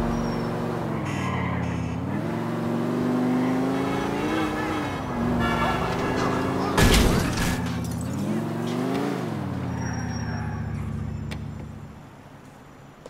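A car engine revs up and down as the car drives fast.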